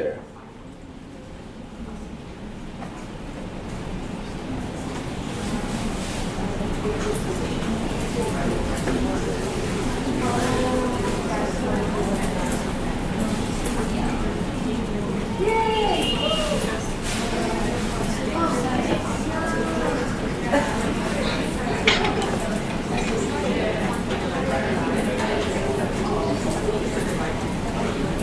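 A man speaks into a handheld microphone, explaining calmly over a loudspeaker in an echoing room.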